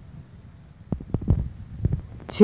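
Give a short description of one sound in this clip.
A cricket bat strikes a leather ball with a sharp crack.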